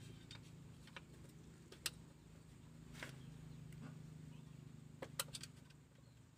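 A ratchet wrench clicks on a nut.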